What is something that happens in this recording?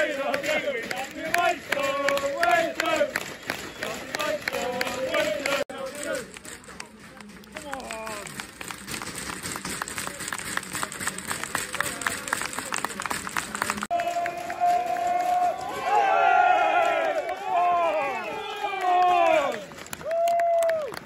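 A crowd of fans chants and sings loudly outdoors.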